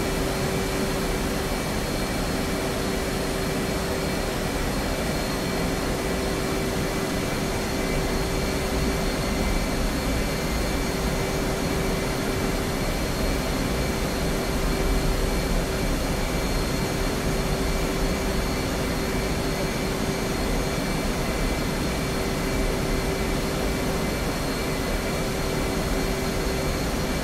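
A jet engine roars steadily with a high, constant whine.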